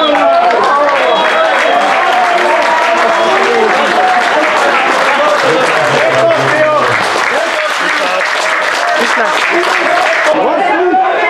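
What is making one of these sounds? A crowd of men sings and chants loudly outdoors.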